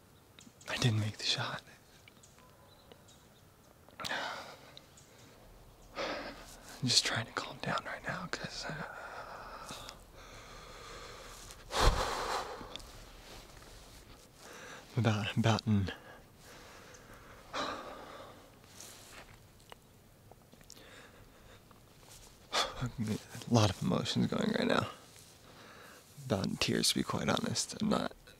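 A young man speaks quietly and close, in short bursts with pauses.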